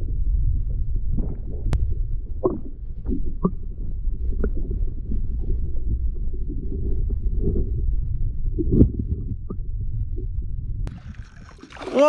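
Water rumbles and gurgles, heard muffled from underwater.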